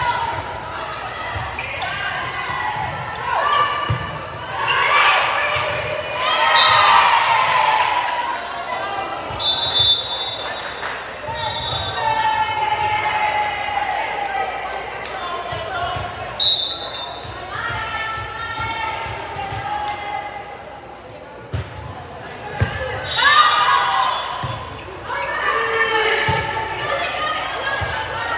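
A volleyball thumps as players hit it.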